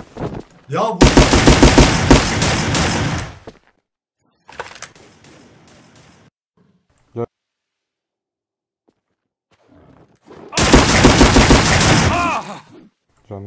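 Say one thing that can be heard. A rifle fires.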